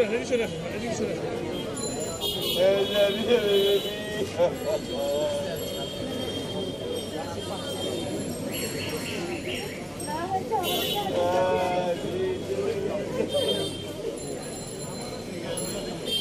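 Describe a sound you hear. Middle-aged women wail and sob loudly close by.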